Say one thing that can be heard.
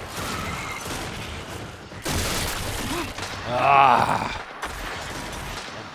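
Gunfire from a game crackles in bursts.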